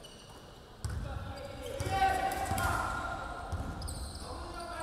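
A basketball bounces with dull thuds on a hard floor in an echoing hall.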